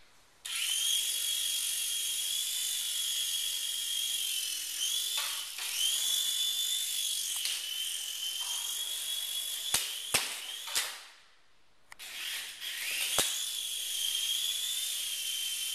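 A small toy helicopter's rotor whirs with a high, steady buzz.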